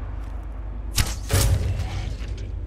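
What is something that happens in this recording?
A bowstring twangs sharply as an arrow is loosed.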